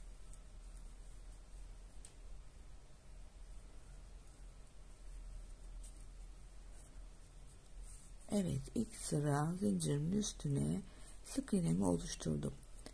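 A crochet hook softly scrapes through yarn.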